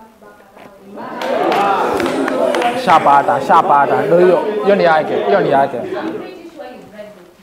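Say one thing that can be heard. A group of teenage students chant loudly together in a room with a slight echo.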